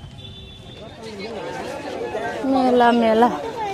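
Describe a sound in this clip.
A crowd of people chatters loudly outdoors.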